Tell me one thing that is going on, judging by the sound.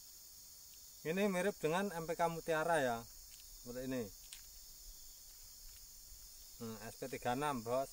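Fertilizer granules rattle softly in a plastic bowl.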